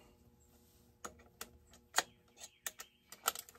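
Plastic parts click and tap.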